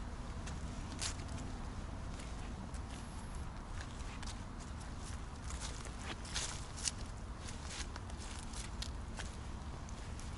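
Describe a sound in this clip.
Small dogs' paws patter and rustle through fallen leaves.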